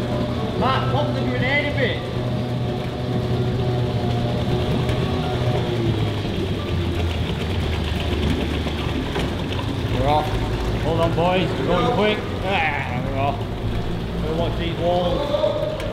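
An outboard motor hums steadily, echoing in a large enclosed space.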